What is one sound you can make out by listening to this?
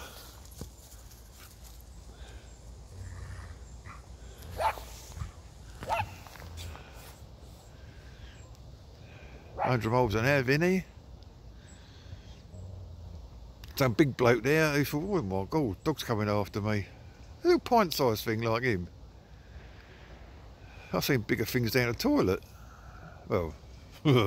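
Two dogs scamper and tussle on grass.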